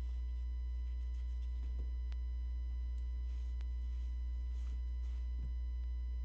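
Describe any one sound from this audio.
A cloth rubs softly against a bag.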